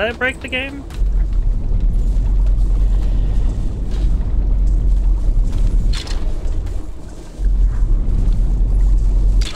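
A low, heavy hum drones steadily.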